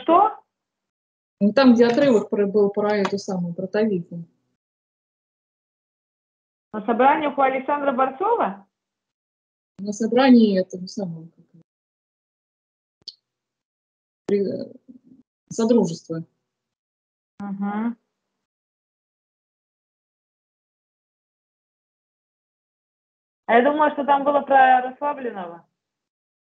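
A middle-aged woman speaks with animation through an online call.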